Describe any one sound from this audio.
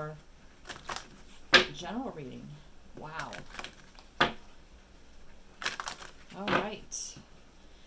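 Playing cards riffle and slap together as they are shuffled close by.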